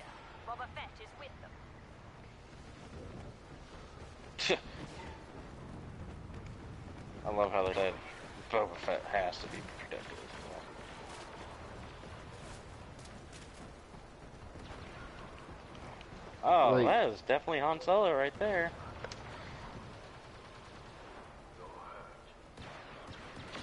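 A blaster rifle fires a shot.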